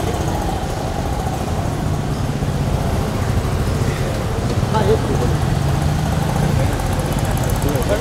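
Traffic rumbles steadily nearby outdoors.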